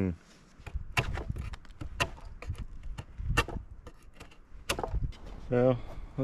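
A chisel scrapes and knocks against wood.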